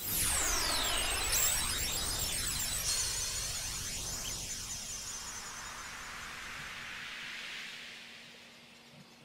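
A magical chime shimmers and slowly fades.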